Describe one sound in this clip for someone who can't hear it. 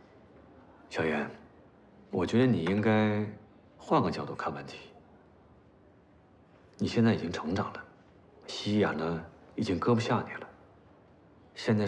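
A man speaks warmly, close by.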